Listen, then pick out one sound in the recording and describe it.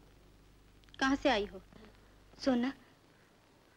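A young woman asks a short question calmly, close by.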